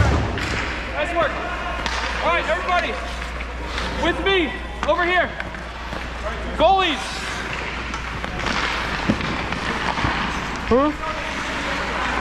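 A man coaches loudly nearby in a large echoing hall.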